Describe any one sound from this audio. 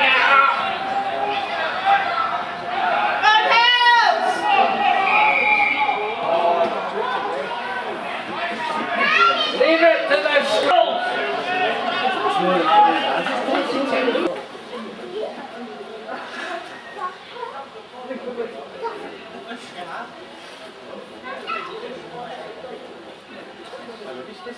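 Spectators chatter and murmur nearby.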